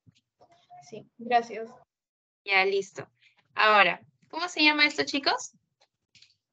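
A young woman speaks calmly into a microphone over an online call.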